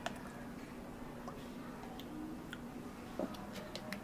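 Syrup pours from a bottle into a cup.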